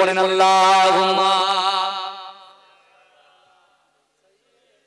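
A young man chants loudly in a long, wavering voice through a microphone, then quickly fades away.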